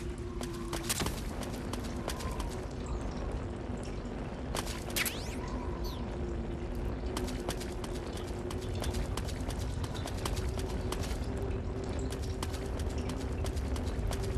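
A torch flame crackles and hisses close by.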